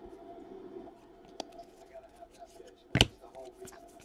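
Trading cards are sorted and flicked through by hand.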